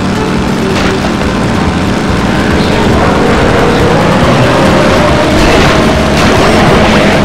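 Upbeat game music plays throughout.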